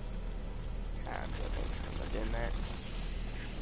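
Electric traps zap and crackle in quick bursts.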